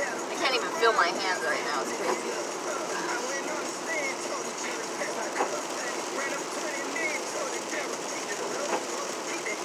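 A young man sings loudly close by.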